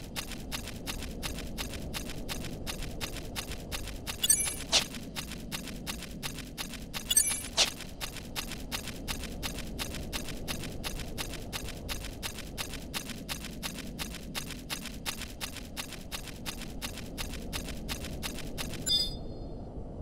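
Quick footsteps patter steadily on stone.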